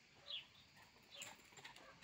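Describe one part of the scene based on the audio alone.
A small dog runs across grass with light, quick footfalls.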